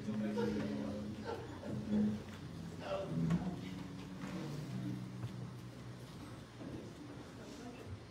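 A band plays music in a large echoing hall.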